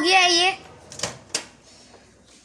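A microwave door clicks open.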